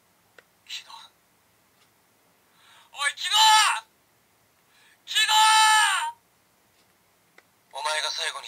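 A button on a toy belt clicks.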